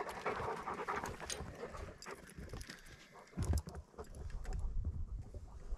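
A metal gate rattles and clanks.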